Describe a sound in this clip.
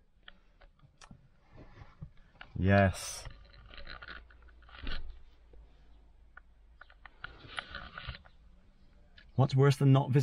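A man speaks close by, calmly and then with animation.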